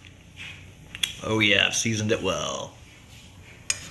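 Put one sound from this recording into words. A metal spoon clinks.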